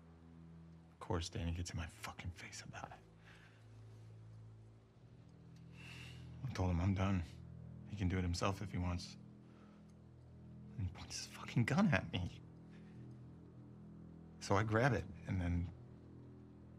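A man speaks quietly and calmly, close by.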